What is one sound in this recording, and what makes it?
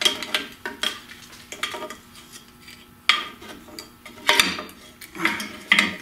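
A metal brake shoe scrapes and clanks as it is pulled free.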